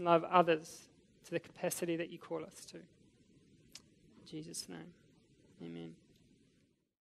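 A young man speaks slowly and quietly through a microphone.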